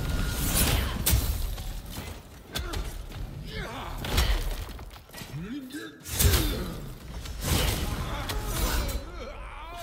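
Heavy blows land with loud thuds and crashes.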